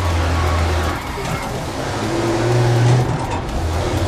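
Tyres screech through a corner.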